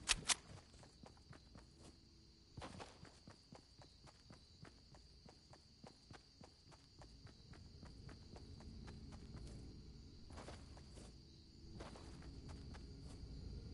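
Footsteps run on grass.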